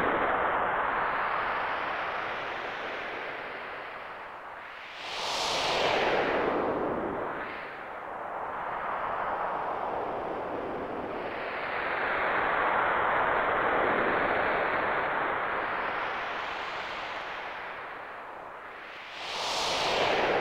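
A waterfall rushes loudly, swelling and fading in slow waves.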